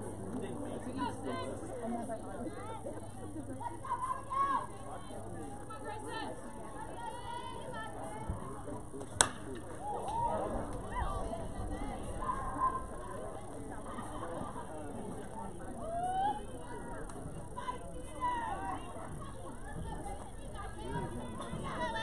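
Young women call out and cheer across an open field.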